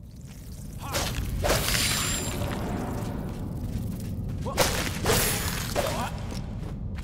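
Weapon blows clash in a fight.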